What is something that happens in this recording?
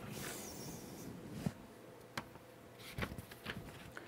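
Book pages rustle as they are turned.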